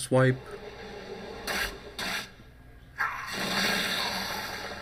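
Magical game effects whoosh and crash as a spell hits.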